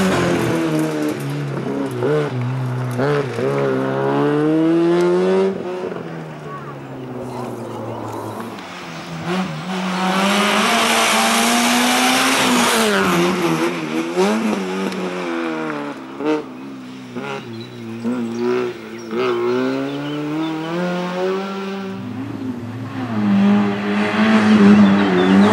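A small hatchback rally car's engine revs hard and shifts gears.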